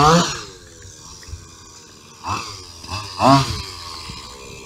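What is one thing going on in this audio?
A small model car engine revs in sharp, whining bursts.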